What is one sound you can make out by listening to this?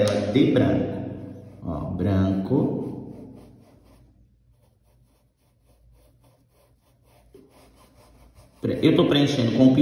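A paintbrush dabs and brushes softly on cloth.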